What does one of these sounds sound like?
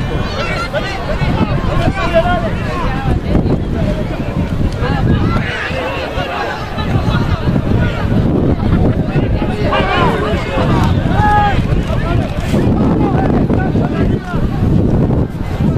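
A crowd of spectators murmurs and cheers from the sidelines.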